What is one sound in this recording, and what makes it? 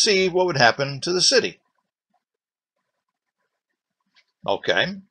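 An older man speaks calmly and close to a microphone, with pauses.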